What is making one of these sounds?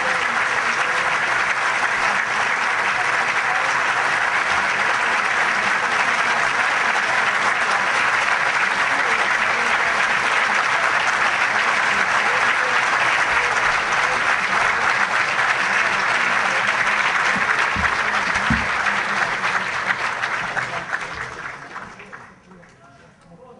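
A large audience applauds loudly and steadily, then the applause fades away.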